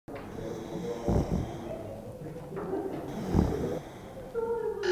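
A man snores softly close by.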